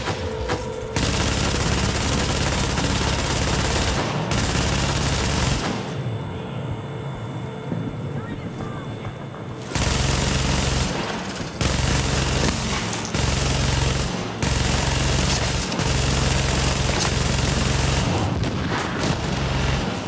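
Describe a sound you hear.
Automatic gunfire rattles in rapid, loud bursts.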